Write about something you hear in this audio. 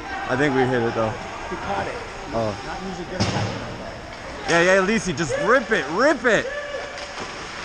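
Young men shout to each other across an echoing ice rink.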